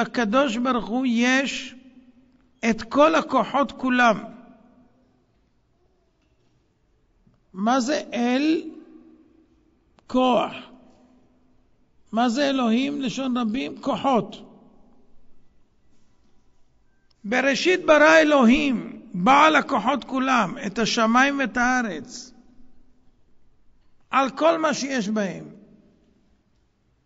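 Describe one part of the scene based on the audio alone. An elderly man speaks with animation through a microphone, in short bursts with pauses.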